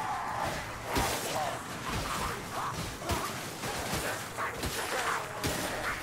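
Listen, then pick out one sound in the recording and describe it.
Blades slash and strike repeatedly in quick combat.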